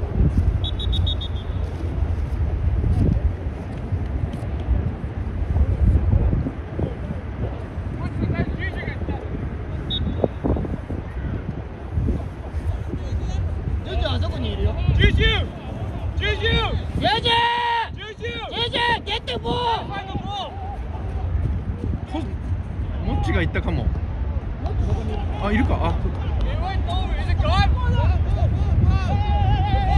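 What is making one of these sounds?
Wind rumbles steadily across an open outdoor space.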